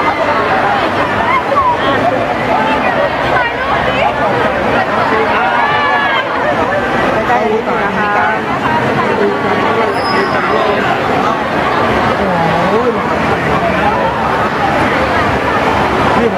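A crowd chatters all around in a large echoing hall.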